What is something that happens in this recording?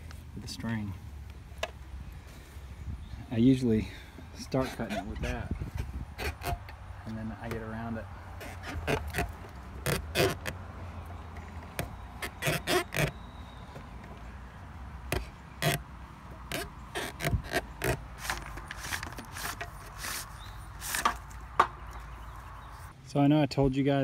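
Hands pull wires through loose soil with rustling and scraping.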